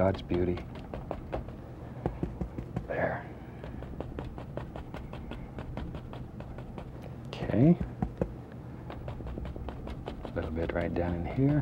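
A painting knife taps and scrapes rapidly against a canvas.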